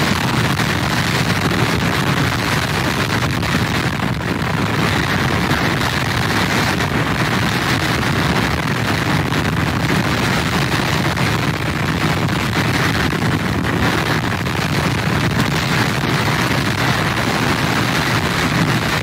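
Heavy surf crashes and rumbles onto the shore.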